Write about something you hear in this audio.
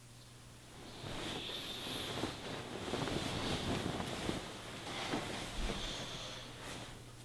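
Bedding rustles as a man throws off a blanket.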